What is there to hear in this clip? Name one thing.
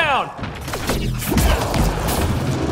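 An energy blast bursts with a loud whoosh.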